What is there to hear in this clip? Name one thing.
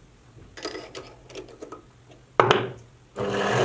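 Metal clicks and clinks as a part is tightened by hand.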